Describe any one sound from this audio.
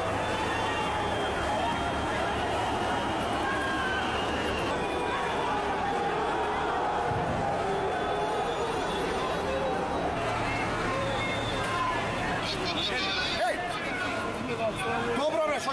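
A large crowd shouts and clamours outdoors.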